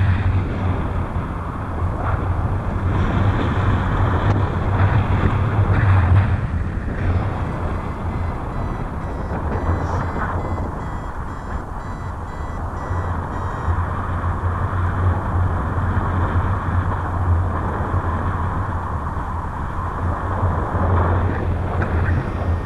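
Strong wind rushes and buffets loudly against the microphone.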